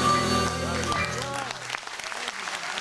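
A live band plays a chord that rings out and ends.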